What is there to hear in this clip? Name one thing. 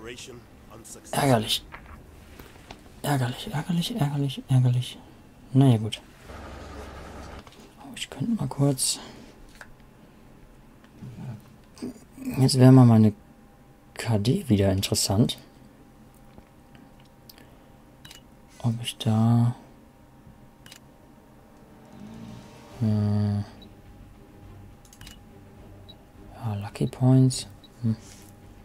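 A young man talks into a close microphone in short bursts, with animation.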